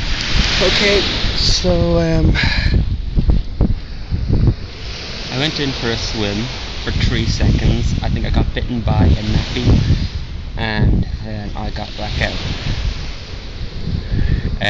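A man talks calmly close to the microphone.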